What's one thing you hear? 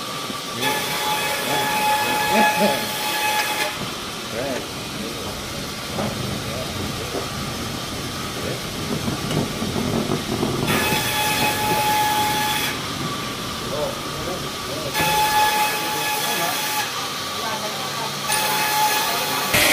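A band saw whines loudly as it cuts through a log, in bursts.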